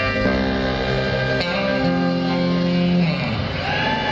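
A live band plays a loud held chord through loudspeakers outdoors.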